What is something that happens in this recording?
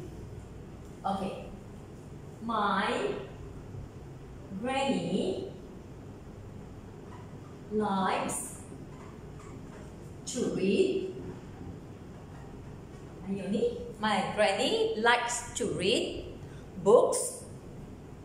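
A woman speaks clearly and slowly, close by, in short phrases with pauses.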